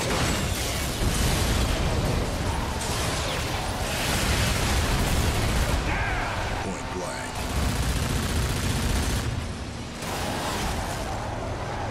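Video game explosions boom and crackle.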